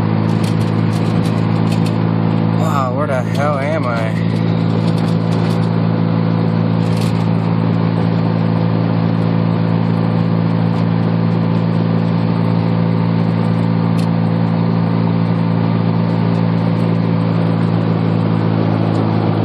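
A car engine drones steadily, heard from inside the car.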